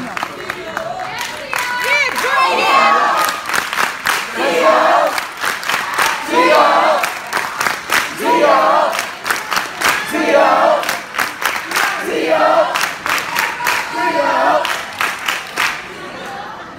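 An audience claps its hands.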